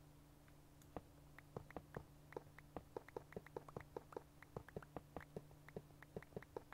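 Footsteps tread quickly on hard ground.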